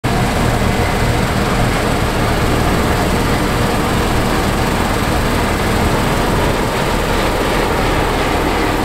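A combine harvester's engine roars steadily close by.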